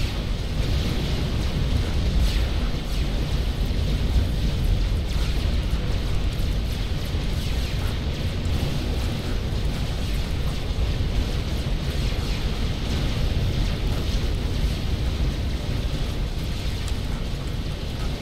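Game units fire weapons in rapid bursts with explosions.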